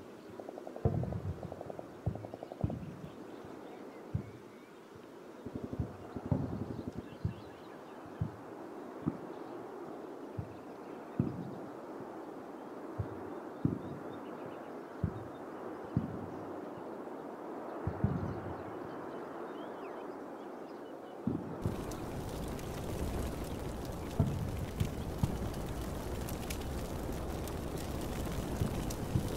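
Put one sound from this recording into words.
Gunshots crack at irregular intervals across open ground.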